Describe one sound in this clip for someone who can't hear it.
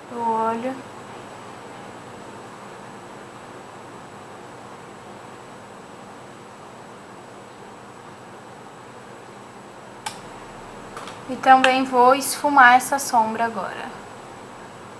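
A young woman speaks briefly and calmly, close to a microphone.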